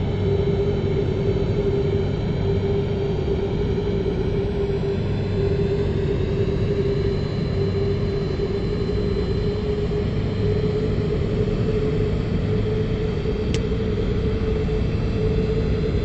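Jet engines hum steadily at low idle.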